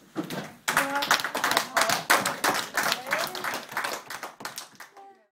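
A group of children and adults clap their hands in lively applause.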